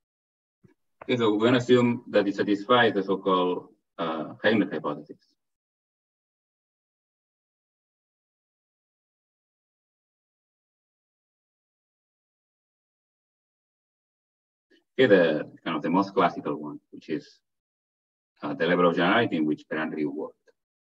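A man speaks calmly over an online call, with pauses.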